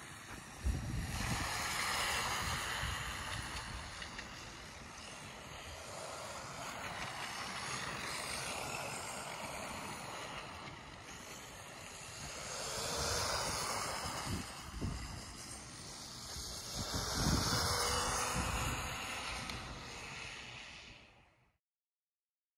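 A small remote-control car's electric motor whines as it races around.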